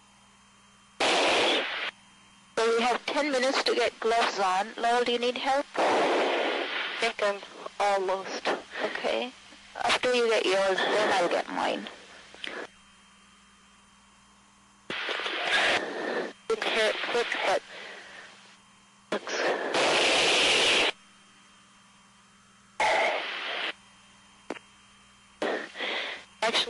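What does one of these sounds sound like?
Men talk over a radio in short bursts.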